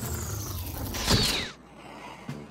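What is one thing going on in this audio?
A rocket's docking clamp whooshes.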